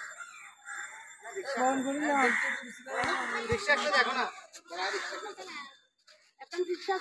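Several women talk nearby in an outdoor crowd.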